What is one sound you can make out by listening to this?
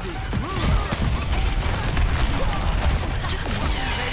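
Explosions burst loudly in a game.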